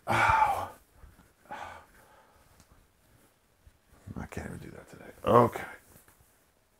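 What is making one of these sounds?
A man talks with animation, close by.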